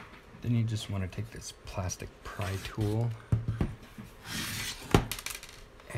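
A plastic pry tool clicks as it prises open a laptop case.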